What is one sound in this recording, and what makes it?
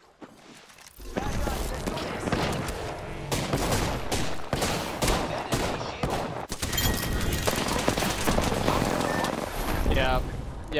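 Gunshots fire in rapid bursts, close by.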